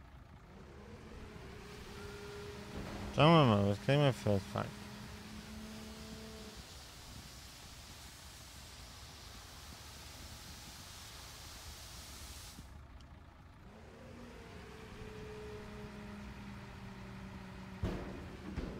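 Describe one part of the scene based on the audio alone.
Hydraulics whine as a dump truck bed tilts up and later lowers.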